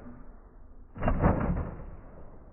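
A toy car lands with a hard thud.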